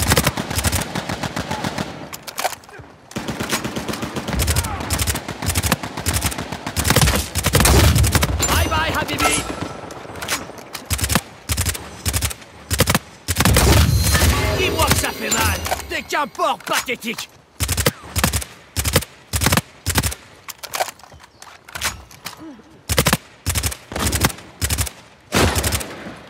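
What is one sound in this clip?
Rifle shots crack and echo.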